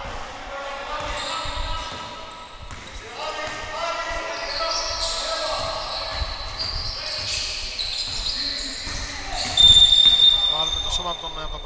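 Men call out and shout to each other across an echoing hall.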